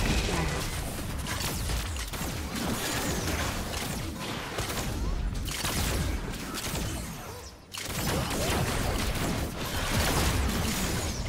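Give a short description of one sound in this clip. Game spell blasts and hits crackle and boom in a fast fight.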